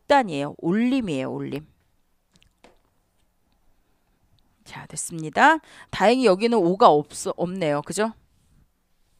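A middle-aged woman lectures with animation through a headset microphone.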